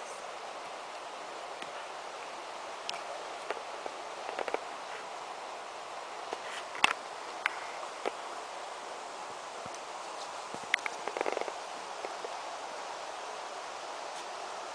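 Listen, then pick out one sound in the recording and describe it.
Fabric rustles as a dog moves on a blanket.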